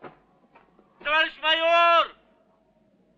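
A man shouts loudly across the hills.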